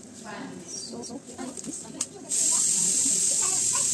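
Dry onion stalks rustle in a person's hands.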